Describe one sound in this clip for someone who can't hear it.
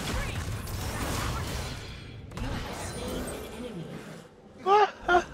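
Fighting game characters clash with whooshing, crackling spell effects.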